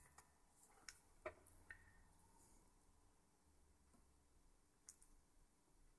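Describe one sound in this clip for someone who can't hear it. Small metal parts tick and click faintly on a tabletop.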